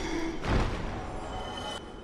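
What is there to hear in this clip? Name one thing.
An armored figure rolls across a stone floor with a clatter.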